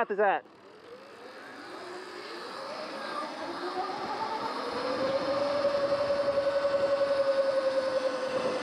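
Wind rushes past.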